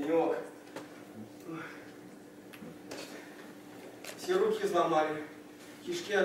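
A young man speaks, heard from a distance in a hall.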